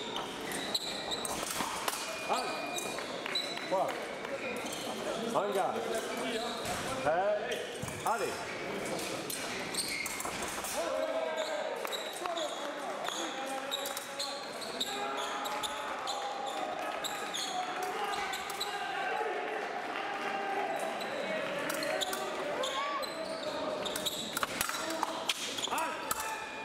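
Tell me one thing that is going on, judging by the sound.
Fencers' shoes squeak and thud on the floor as they step back and forth.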